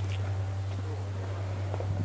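Leafy branches rustle and brush past close by.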